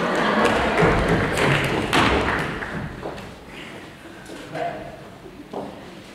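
Footsteps thud on a wooden stage in a large echoing hall.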